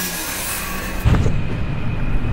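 Something plunges into water with a heavy splash.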